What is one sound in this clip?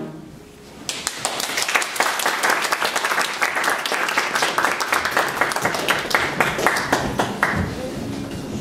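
An audience applauds loudly in an echoing room.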